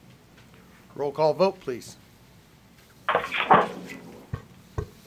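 A man speaks calmly through a microphone in short bursts.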